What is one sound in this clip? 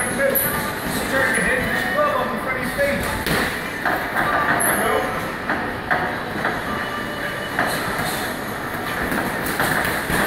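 Boxing shoes squeak and shuffle on a canvas floor.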